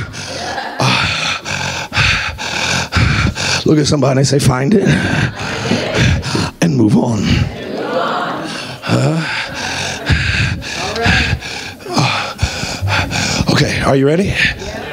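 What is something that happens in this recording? A man speaks with animation into a microphone, heard over loudspeakers in an echoing hall.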